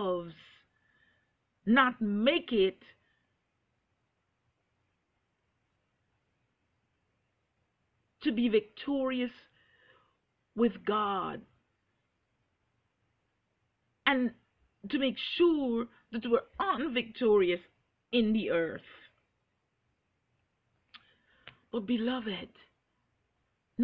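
A middle-aged woman speaks close to the microphone with pauses, calm and expressive.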